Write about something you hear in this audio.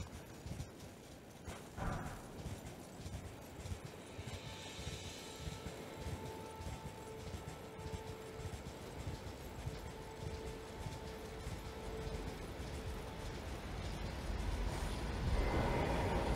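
Hooves thud steadily as a horse gallops.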